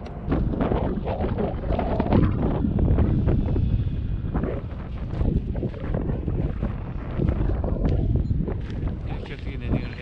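Strong wind gusts and rumbles against the microphone outdoors.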